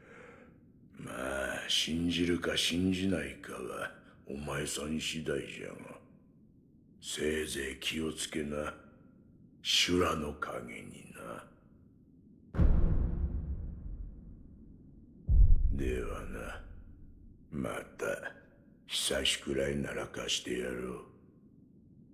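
An elderly man speaks slowly and gravely, close by.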